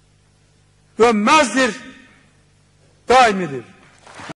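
An elderly man speaks forcefully into a microphone, with pauses between phrases, heard through loudspeakers.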